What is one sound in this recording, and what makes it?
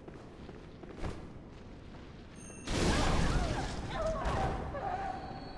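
A blade swings and slashes with a swift whoosh.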